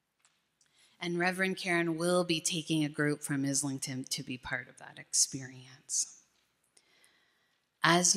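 A middle-aged woman speaks calmly into a microphone over loudspeakers in a large echoing hall.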